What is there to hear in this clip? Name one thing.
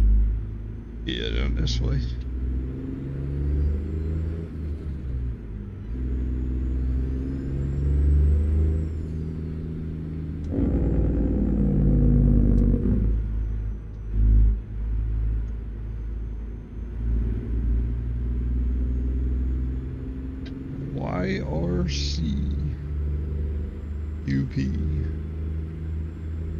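A truck's diesel engine rumbles low and steady, rising in pitch as it speeds up.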